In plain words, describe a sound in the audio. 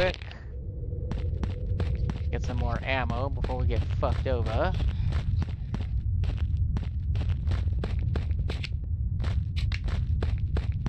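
Footsteps crunch steadily over leaves and undergrowth.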